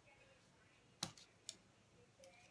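A plastic cup is set down on a table with a sharp knock.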